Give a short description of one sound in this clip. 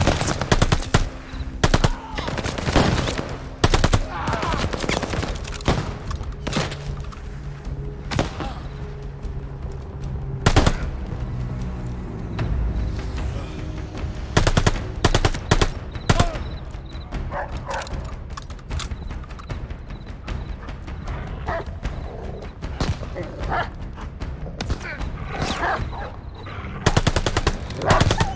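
A submachine gun fires in short, rapid bursts close by.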